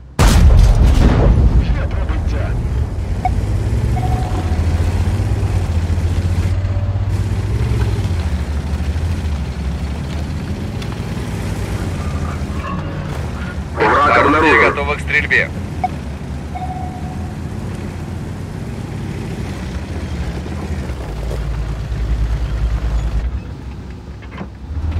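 A heavy tank engine rumbles steadily as it drives.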